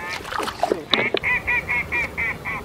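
A duck call quacks in quick bursts.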